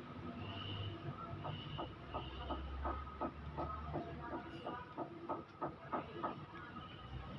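Metal parts click rapidly as an engine's timing gear is turned by hand.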